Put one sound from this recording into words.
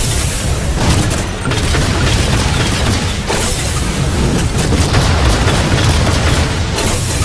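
A heavy machine gun fires in rapid, continuous bursts.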